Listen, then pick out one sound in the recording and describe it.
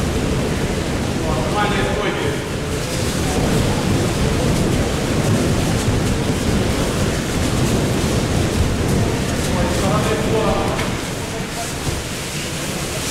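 Many bare feet shuffle and thump on padded mats in a large echoing hall.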